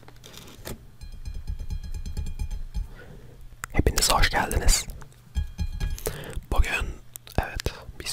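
A young man speaks softly and closely into a microphone.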